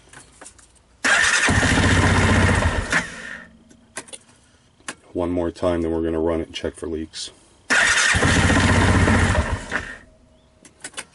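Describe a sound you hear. A small engine cranks over in short bursts without catching.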